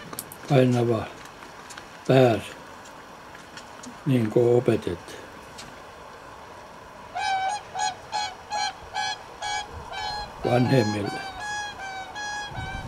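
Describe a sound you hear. Whooper swans trumpet in a series of loud, bugling calls.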